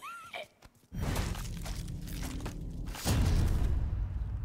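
Heavy punches thud in a brawl.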